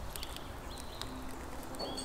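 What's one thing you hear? A wood fire crackles.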